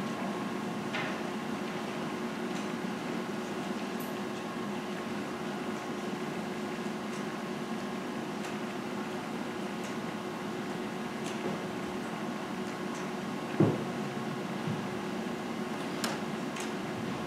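Footsteps shuffle softly across a floor.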